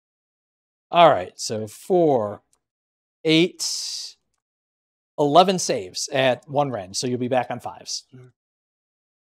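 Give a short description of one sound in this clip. A man talks with animation through a microphone, in short bursts.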